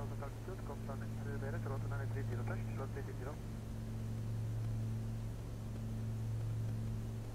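A single-engine piston light plane's engine drones steadily, heard from inside the cabin while cruising.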